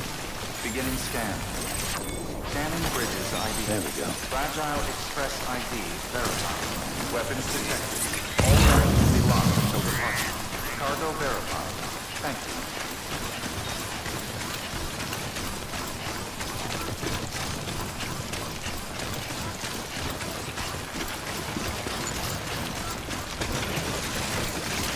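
Heavy footsteps crunch steadily over rough, stony ground.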